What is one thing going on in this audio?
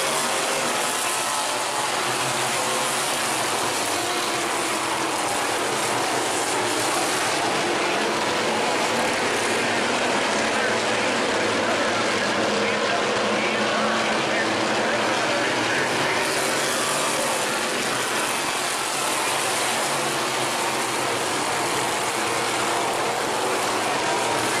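Race car engines roar loudly around a dirt track outdoors.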